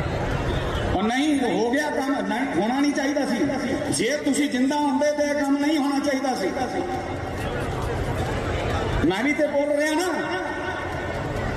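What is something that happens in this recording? A man speaks with emotion through a loudspeaker, his voice echoing.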